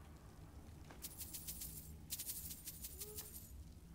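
Coins clink and jingle briefly.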